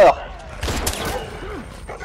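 A silenced gun fires a shot.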